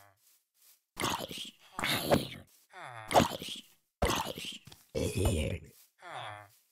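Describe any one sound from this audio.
A sword strikes a game zombie.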